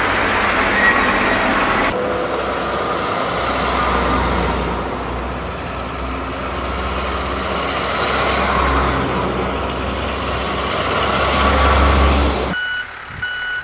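Heavy military trucks rumble past with deep engine roars.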